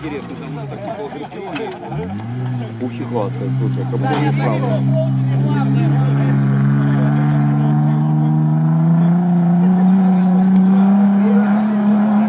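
An off-road engine revs hard and slowly rises in pitch.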